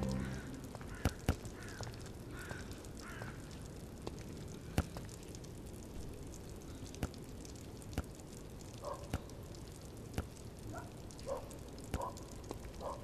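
A ball bounces on hard ground.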